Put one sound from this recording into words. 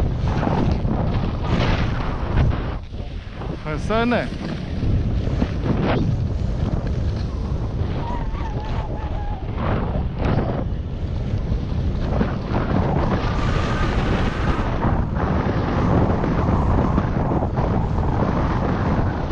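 Wind rushes loudly past the listener.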